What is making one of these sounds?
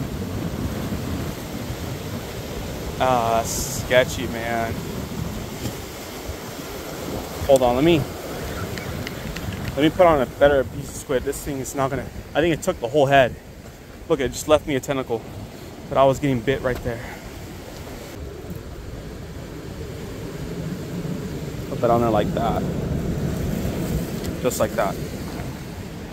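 Waves crash and wash over rocks below.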